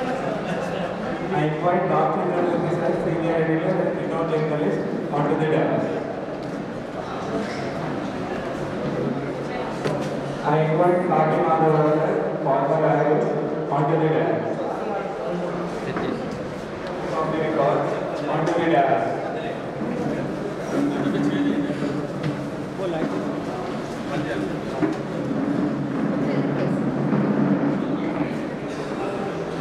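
A young man speaks into a microphone with animation, heard through a loudspeaker in an echoing hall.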